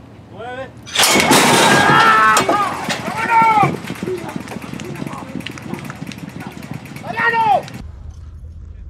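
Men shout loudly and excitedly close by.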